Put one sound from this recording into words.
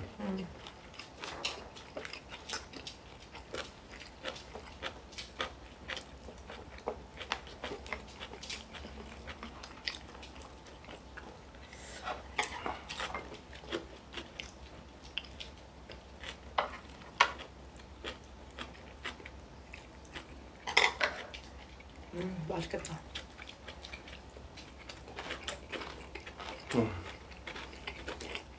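Chopsticks and spoons clink against bowls and plates.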